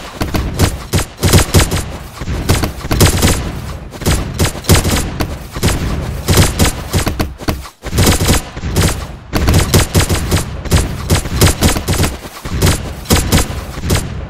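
Small explosions pop as game creatures are hit.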